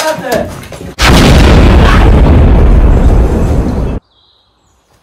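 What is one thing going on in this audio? A loud explosion roars and cuts off abruptly.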